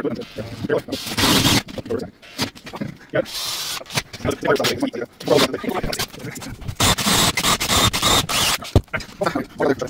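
A cordless drill bores through a plywood floor.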